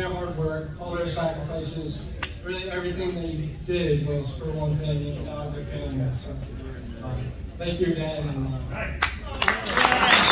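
A young man speaks calmly into a microphone, heard through loudspeakers in a large room.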